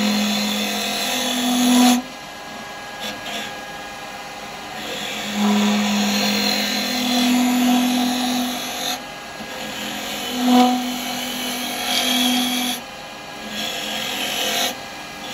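A wood lathe hums as it spins steadily.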